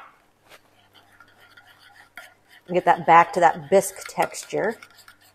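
A spoon stirs and scrapes softly in a bowl.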